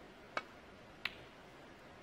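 Snooker balls knock together with a sharp click.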